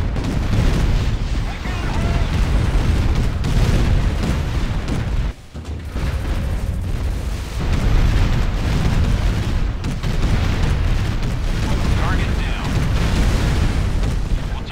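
Explosions boom and rumble in a heavy battle.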